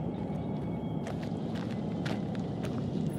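Footsteps crunch slowly on the ground.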